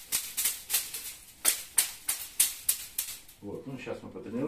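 Wooden sticks tap rapidly on a person's back.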